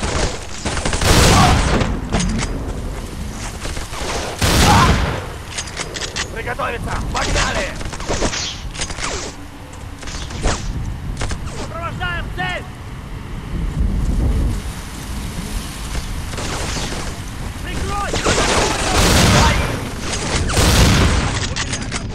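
A shotgun fires several loud, booming blasts.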